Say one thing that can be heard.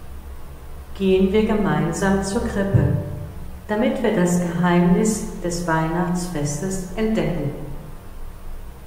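An older woman speaks calmly into a microphone in an echoing room.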